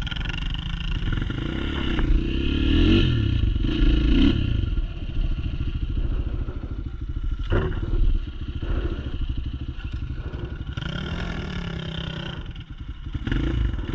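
A dirt bike engine revs and putters up close, rising and falling with the throttle.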